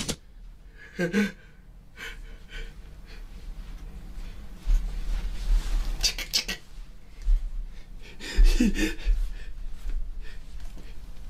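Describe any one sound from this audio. A young man laughs and talks with animation close by.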